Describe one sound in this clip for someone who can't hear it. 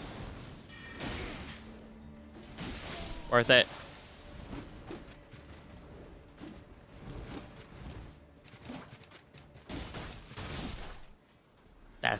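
Swords clash and slash in quick, sharp strikes.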